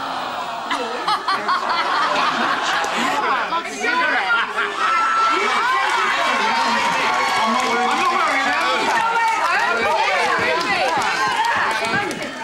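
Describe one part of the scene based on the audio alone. A young woman laughs and shrieks close by.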